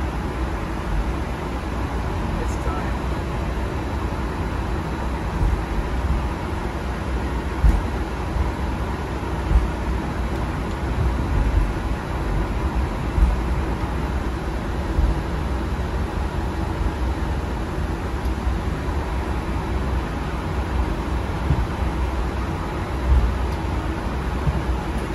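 An aircraft rumbles and thumps as it rolls along a runway.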